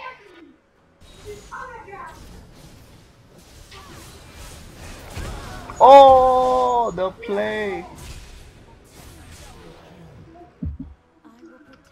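Spell effects crackle and whoosh during a fight.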